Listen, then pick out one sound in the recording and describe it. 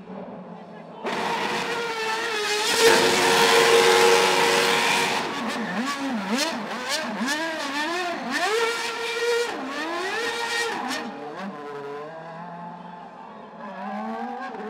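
A racing car engine roars and revs up and down loudly.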